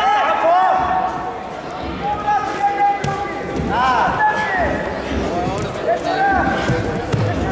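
Shoes squeak sharply on a rubber mat.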